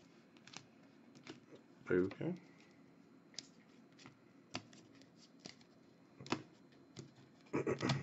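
Plastic card cases clack and tap against each other.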